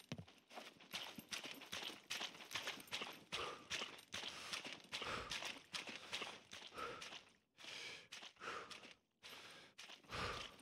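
Footsteps crunch on dirt and patches of snow at a running pace.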